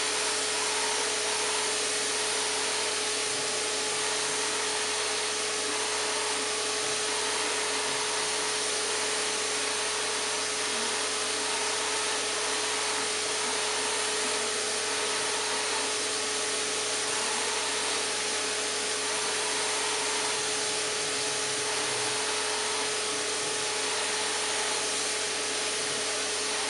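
A spray gun hisses steadily as it sprays paint.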